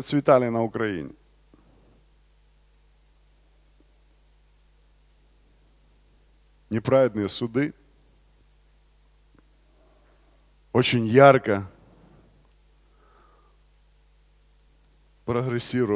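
A man speaks with emphasis into a microphone in short bursts with long pauses.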